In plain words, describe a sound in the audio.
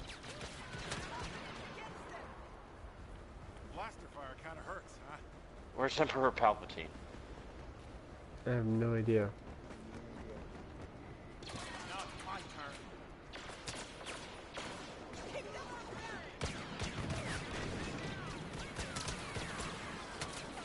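Laser blasters fire in quick zapping shots.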